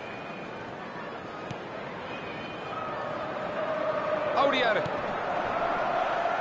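A stadium crowd roars steadily and swells louder.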